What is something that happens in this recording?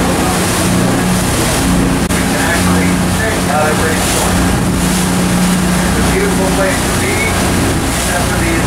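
A boat engine drones steadily close by.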